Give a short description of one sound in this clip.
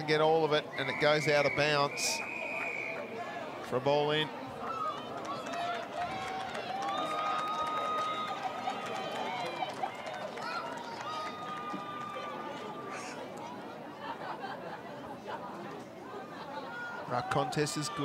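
A crowd of spectators murmurs outdoors.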